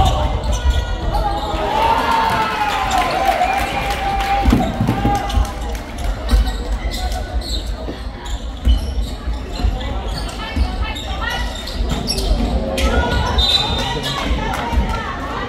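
Spectators chatter and shout in a large echoing hall.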